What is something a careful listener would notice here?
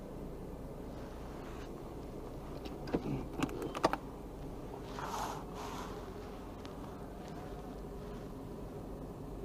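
A small hatchback's engine idles, heard from inside the cabin.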